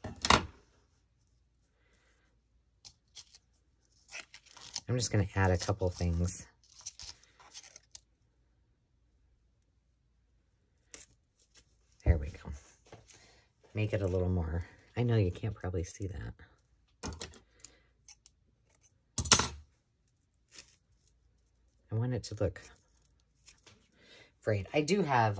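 Thin plastic film crinkles and rustles between fingers.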